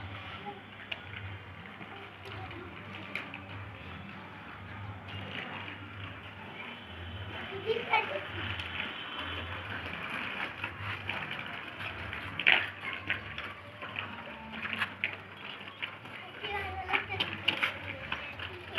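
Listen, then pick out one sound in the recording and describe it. A small bicycle's wheels roll and rattle over rough concrete.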